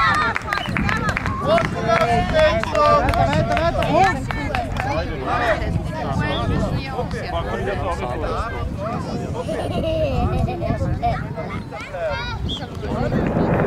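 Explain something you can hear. Many young children shout and chatter excitedly nearby, outdoors.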